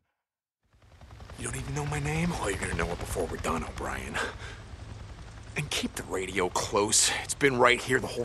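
A man talks in a low, gruff voice.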